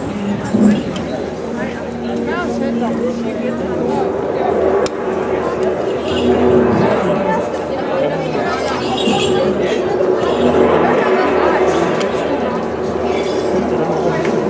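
Drums pound in a steady beat outdoors.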